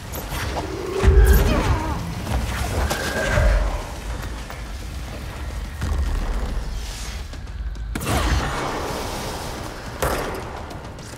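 Debris crashes and smashes.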